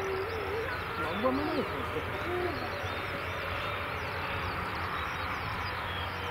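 A jet airliner's engines roar steadily as it rolls along a runway.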